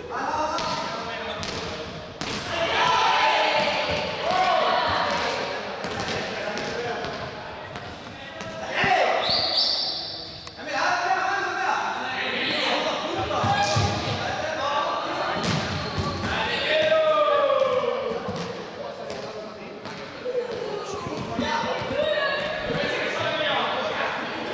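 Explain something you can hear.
Sneakers squeak and shuffle on a hard floor.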